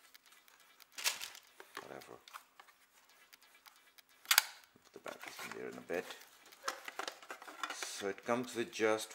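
Plastic packaging crinkles and clicks as it is handled.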